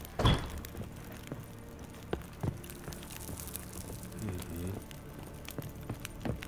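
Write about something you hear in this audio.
Footsteps thud on a wooden floor and stairs.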